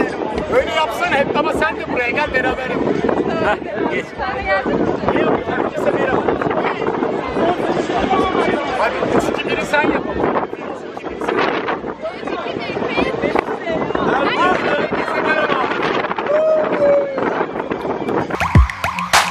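A crowd chatters outdoors on a beach.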